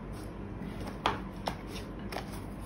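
Wooden pieces knock lightly against a table.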